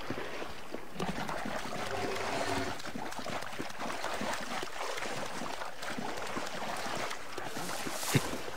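Water splashes and sloshes as someone wades through it.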